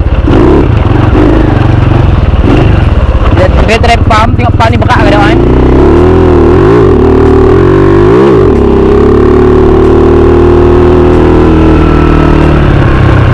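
A small motorbike engine runs loudly close by, its pitch rising and falling as it revs.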